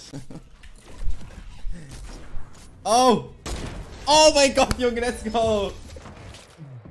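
A young man speaks excitedly into a microphone.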